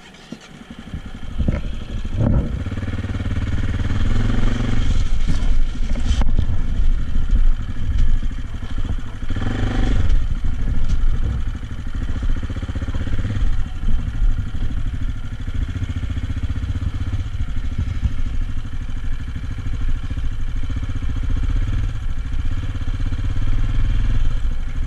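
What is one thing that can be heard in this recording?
A motorcycle engine rumbles steadily as it rides along.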